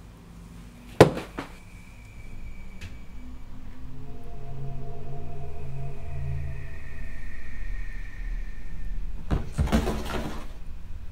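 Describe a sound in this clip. An object knocks down onto a hard surface.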